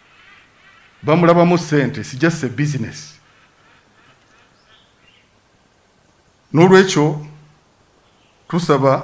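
A man speaks with emphasis through a microphone and loudspeakers, echoing outdoors.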